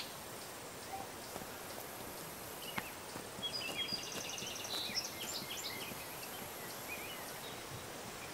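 Footsteps walk softly on grass.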